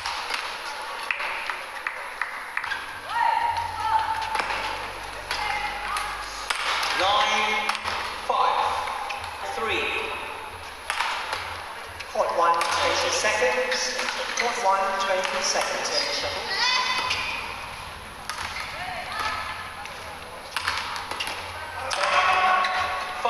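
Rackets strike a shuttlecock in a quick rally, in a large echoing hall.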